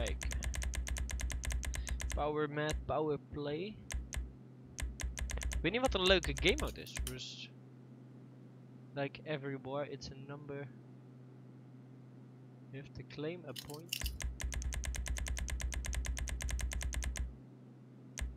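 A game menu ticks rapidly as it scrolls through a list.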